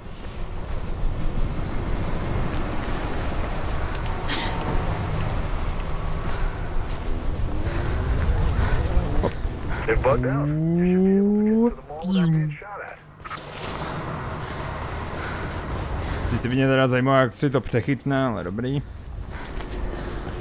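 Quick footsteps pound on a hard rooftop.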